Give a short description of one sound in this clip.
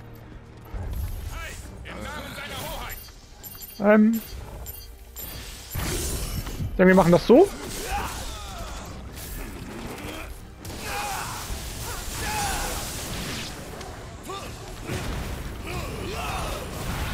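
Swords clash and slash in a fight.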